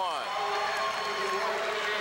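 A young man shouts triumphantly.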